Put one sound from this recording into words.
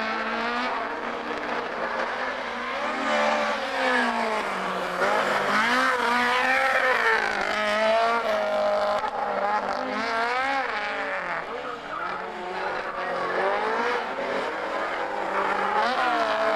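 A race car engine revs high and shifts through gears as the car speeds through corners.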